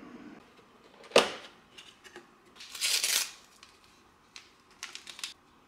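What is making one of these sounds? Foil crinkles as a tea packet is torn open.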